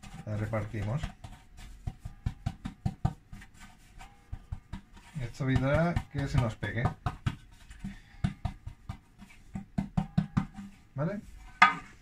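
Light knocks sound as a hand taps a metal baking tin.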